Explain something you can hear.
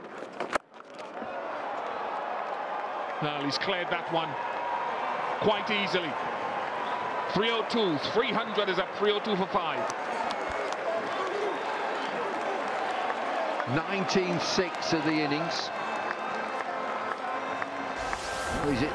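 A large crowd cheers and claps loudly outdoors.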